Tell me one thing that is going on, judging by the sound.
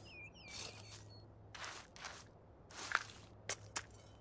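Soil is scraped and dug by hand.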